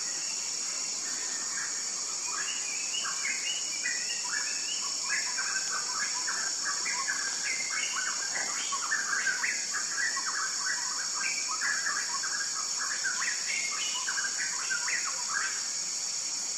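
A small bird sings a rapid series of short, chirping notes close by.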